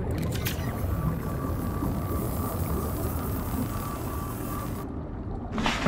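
A repair tool buzzes and hisses steadily underwater.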